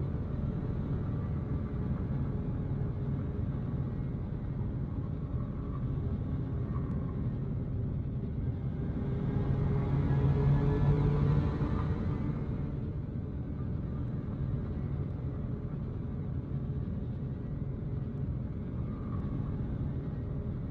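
A spacecraft engine rumbles low and steady.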